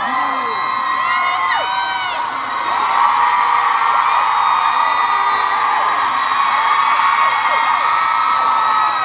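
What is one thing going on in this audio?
A large crowd cheers loudly in an echoing hall.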